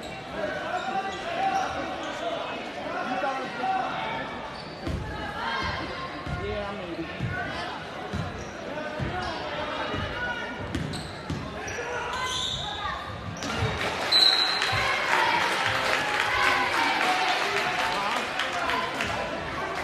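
Sneakers squeak on a wooden court.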